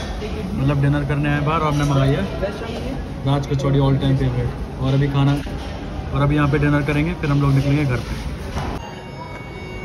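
A young man talks close up, with animation.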